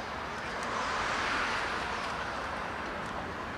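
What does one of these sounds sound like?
A car passes close by with a swelling whoosh.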